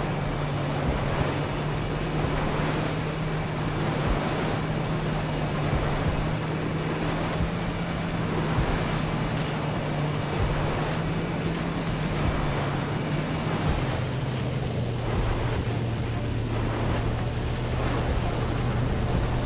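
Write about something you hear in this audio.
A boat engine drones steadily, dropping in pitch near the end.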